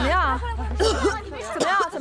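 A young woman coughs and gasps.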